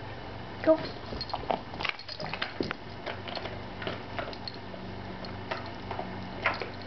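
A dog sniffs and snuffles close by.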